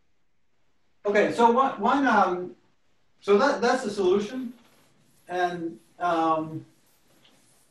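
A man speaks calmly and clearly, close by.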